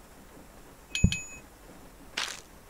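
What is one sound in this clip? A short game chime rings as coins are earned.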